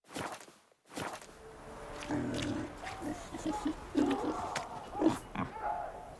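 Pigs grunt and snuffle close by.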